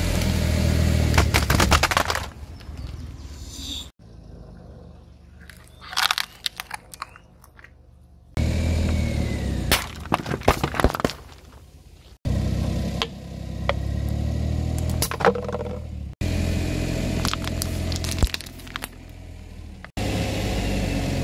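A car engine rumbles low nearby.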